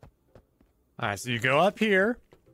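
A man speaks loudly and with animation, close to a microphone.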